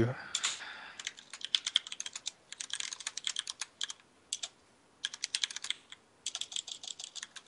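Keys clatter on a computer keyboard in quick bursts.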